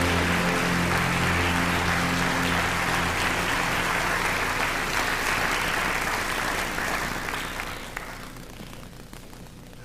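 A choir sings in a large hall.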